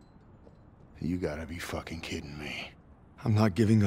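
A man mutters in disbelief nearby.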